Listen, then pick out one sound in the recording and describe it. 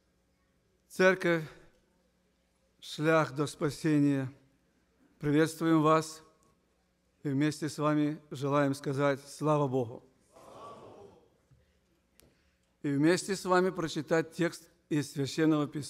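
A middle-aged man speaks calmly and clearly into a microphone in a large hall.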